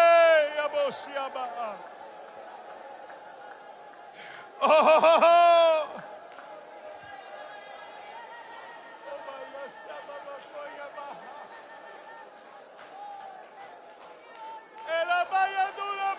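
An older man preaches through a microphone in a large hall, his voice rising to loud, strained shouts.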